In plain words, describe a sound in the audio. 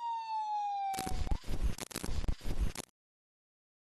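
Loud static crackles and buzzes in bursts.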